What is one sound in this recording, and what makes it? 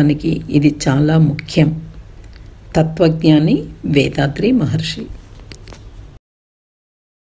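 An elderly man speaks calmly and slowly.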